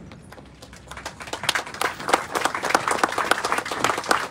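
A crowd applauds with rapid clapping.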